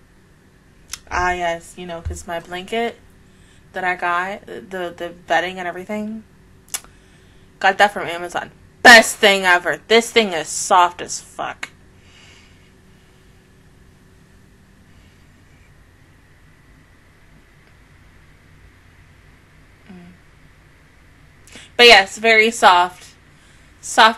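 A young woman speaks casually and close into a microphone, in short bursts with pauses.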